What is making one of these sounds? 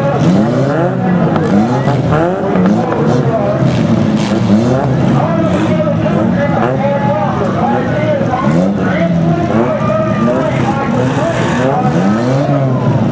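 Several car engines rev and roar loudly outdoors.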